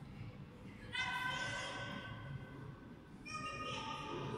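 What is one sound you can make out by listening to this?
A man talks briefly, heard from across an echoing hall.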